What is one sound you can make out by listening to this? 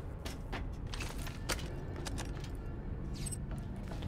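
A metal crate lid clanks open.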